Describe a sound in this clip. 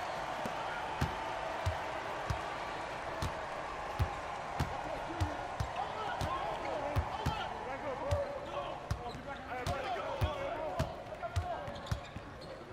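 A basketball bounces on a hard court in a steady rhythm.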